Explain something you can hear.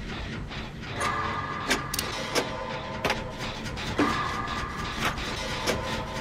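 A short electronic chime rings out twice.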